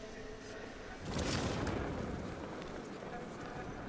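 Wind rushes past a gliding figure.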